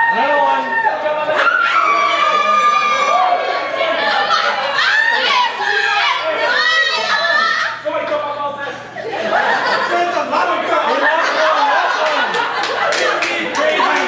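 A group of young people shout and cheer close by.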